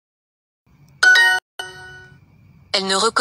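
A bright two-note chime rings out from a phone.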